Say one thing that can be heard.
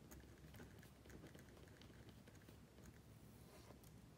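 Fingers tap the keys of a calculator with light clicks.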